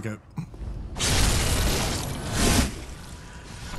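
A blade slashes into flesh with a wet thud.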